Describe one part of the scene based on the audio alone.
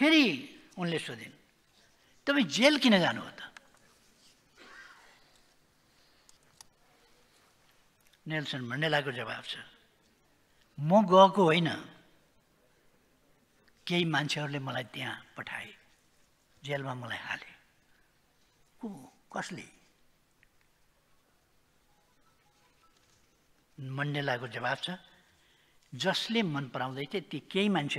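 An elderly man speaks slowly and deliberately into a microphone, with long pauses.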